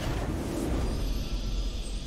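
A victory fanfare swells at the end.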